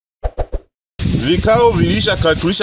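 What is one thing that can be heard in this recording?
A man speaks loudly and with animation outdoors.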